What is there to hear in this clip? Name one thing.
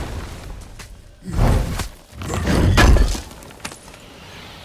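A heavy chest lid is forced open with loud thuds.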